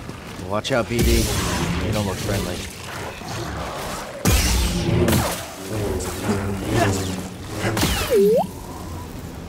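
Metal clashes and impacts ring out during a fight.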